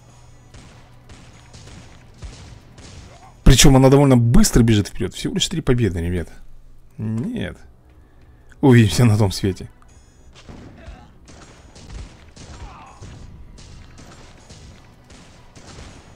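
Rapid gunshots and small blasts crackle in a video game battle.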